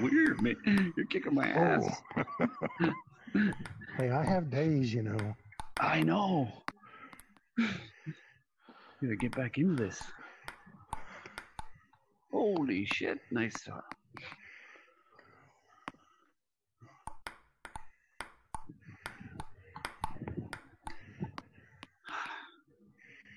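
A ping-pong ball clicks sharply against a table and paddles.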